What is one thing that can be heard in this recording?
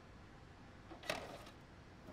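A tape clicks into a player.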